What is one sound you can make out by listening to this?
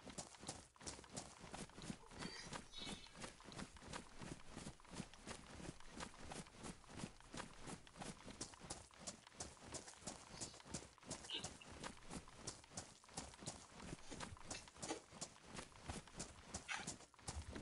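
Footsteps crunch steadily on gravel and grass.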